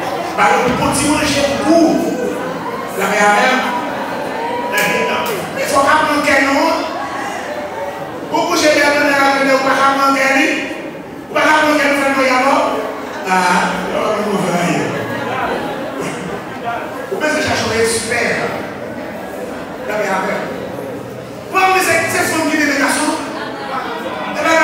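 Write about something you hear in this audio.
A man preaches with animation into a microphone, heard loudly through loudspeakers in an echoing hall.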